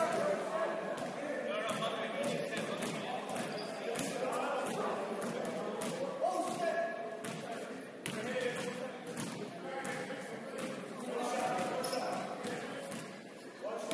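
Spectators chatter and call out in a large echoing gym.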